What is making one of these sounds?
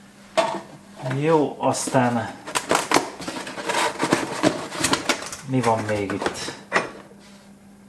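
A cardboard box rustles and scrapes.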